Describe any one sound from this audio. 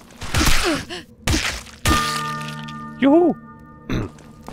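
A large creature squeals as it dies.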